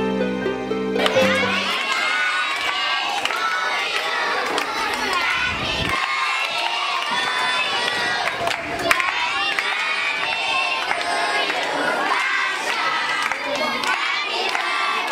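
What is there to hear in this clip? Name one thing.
A large group of children sing together outdoors.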